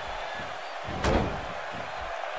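A body thuds heavily onto a ring mat.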